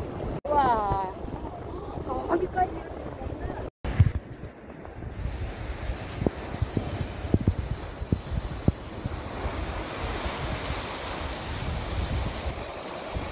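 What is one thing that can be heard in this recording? Waves wash and break against rocks below.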